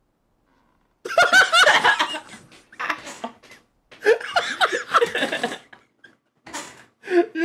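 A man laughs loudly and shouts close to a microphone.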